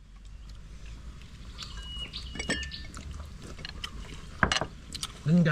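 Chopsticks click against snail shells on a plate.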